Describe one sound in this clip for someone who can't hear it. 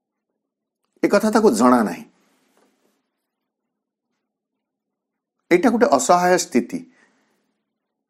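A man speaks calmly and close to a microphone, in two short phrases.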